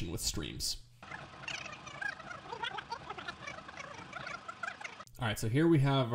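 A young man's voice chatters rapidly and high, sped up.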